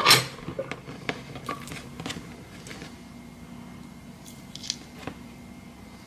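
Fingers peel the skin from an avocado.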